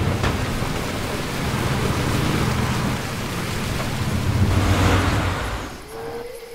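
A vehicle engine rumbles while driving over rough ground.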